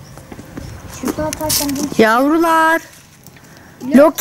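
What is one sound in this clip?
A young girl talks loudly nearby.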